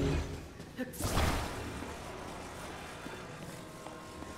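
A magical whoosh and hum rises as an object is lifted.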